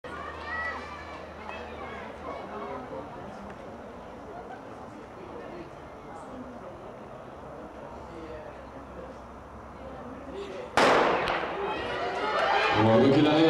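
A crowd of spectators chatters outdoors.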